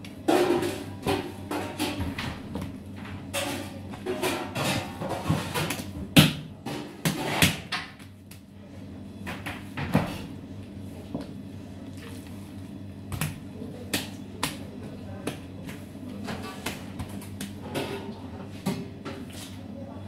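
Dough thumps and slaps against a metal counter as it is kneaded by hand.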